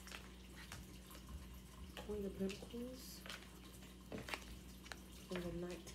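Playing cards are shuffled and flicked by hand.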